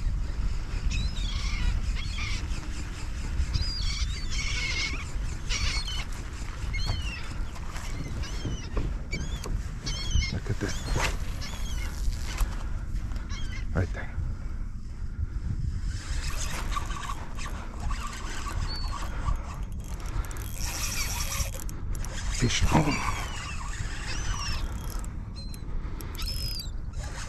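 Gulls call repeatedly overhead.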